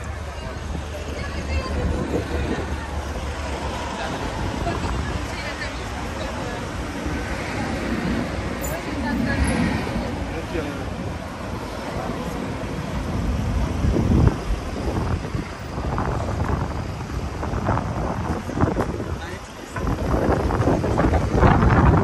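Wind blusters into the microphone outdoors.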